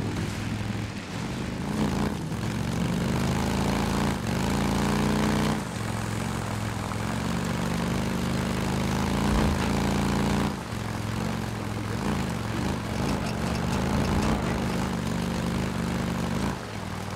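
A motorcycle engine revs up and down as the bike rides along.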